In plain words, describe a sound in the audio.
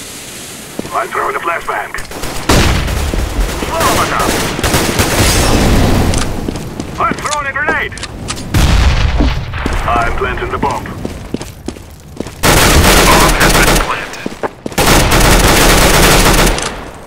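A submachine gun fires in bursts.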